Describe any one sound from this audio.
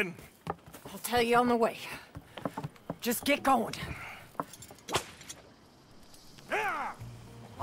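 A young woman answers calmly.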